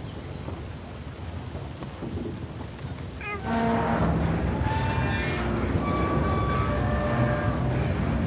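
A metal crank creaks and grinds as it turns.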